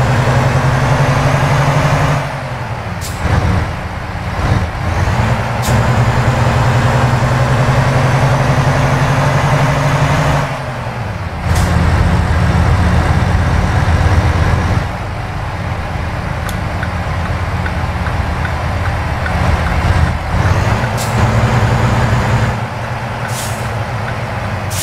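A heavy truck engine drones steadily, dropping and rising again as it shifts gears.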